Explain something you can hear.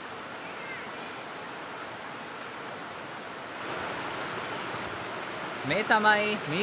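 Water rushes and splashes steadily over rocks in a stream.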